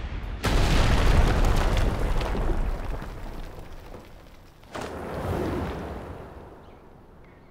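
A large beast digs with a loud rushing blast of sand.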